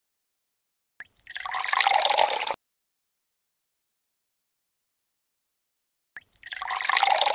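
Liquid pours with a bubbling gurgle.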